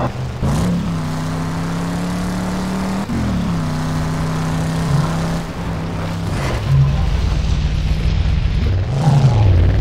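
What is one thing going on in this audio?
Tyres rumble over rough dirt.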